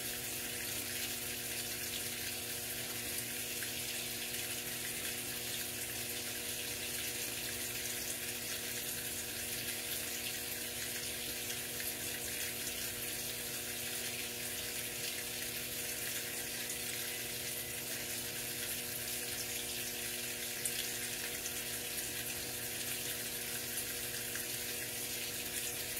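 A washing machine hums steadily.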